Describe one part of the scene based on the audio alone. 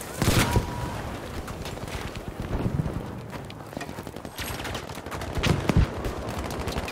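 Gunshots and explosions boom and crack loudly nearby.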